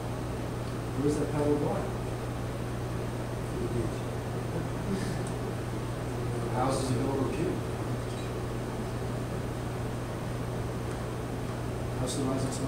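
A middle-aged man speaks with animation, with pauses between phrases.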